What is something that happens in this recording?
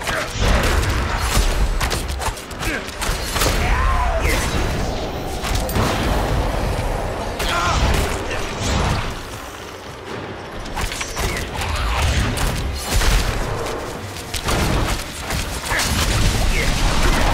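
Heavy impacts thud and rumble deeply.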